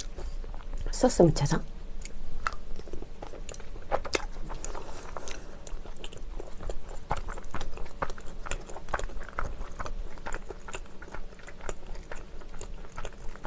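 A young woman chews and slurps close to a microphone.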